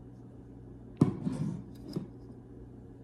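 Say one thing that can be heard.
A serving spatula clinks and scrapes against a baking dish.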